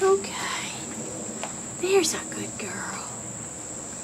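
An owl hisses loudly in short bursts.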